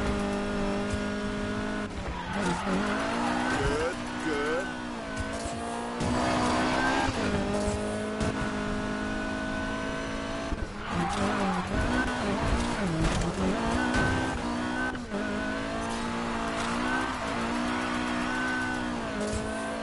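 A sports car engine roars steadily, its pitch rising and falling as the car speeds up and slows down.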